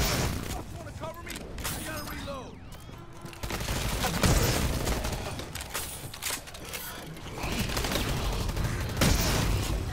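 Gunfire bursts and sizzles from an energy weapon.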